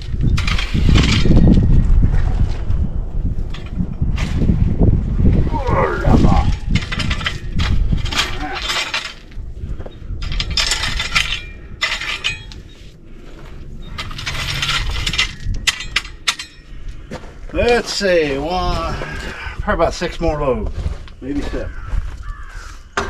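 A metal rake scrapes and scratches across loose gravel.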